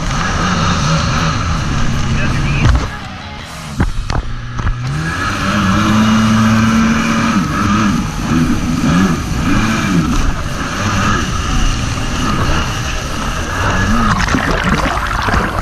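Water splashes and sprays loudly.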